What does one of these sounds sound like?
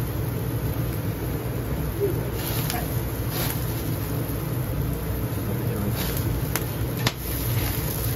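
Burger patties sizzle steadily on a hot grill.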